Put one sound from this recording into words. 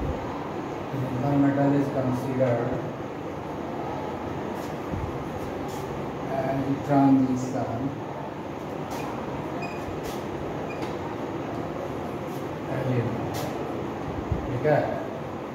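A man speaks calmly, explaining, close by.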